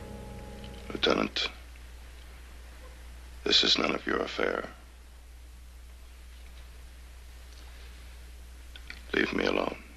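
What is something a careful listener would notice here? A middle-aged man speaks tensely, close by.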